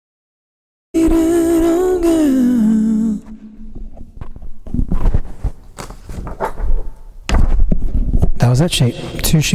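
A man sings into a close microphone.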